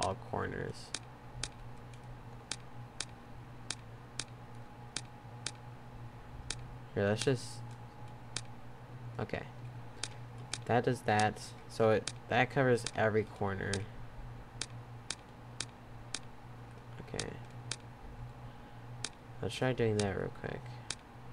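Buttons click sharply, one press after another.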